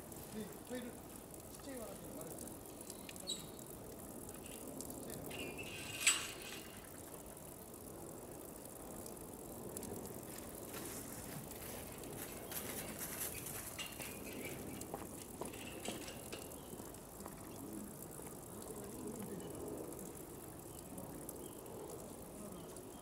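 Water trickles steadily into a pool.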